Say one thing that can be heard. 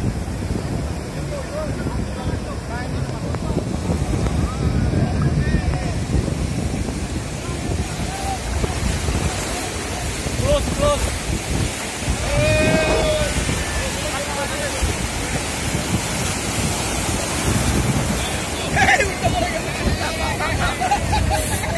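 Waves crash and surge onto the shore in strong wind.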